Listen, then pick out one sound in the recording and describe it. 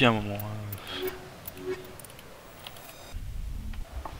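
Electronic menu tones chime briefly.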